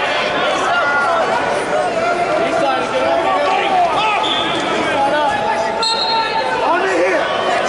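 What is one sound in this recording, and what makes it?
A crowd of people chatters and shouts in a large echoing hall.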